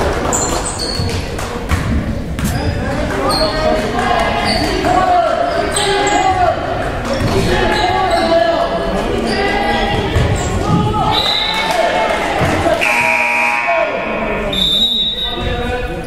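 Sneakers squeak sharply on a floor in a large echoing gym.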